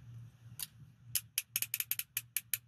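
Metal handcuffs ratchet with quick clicks.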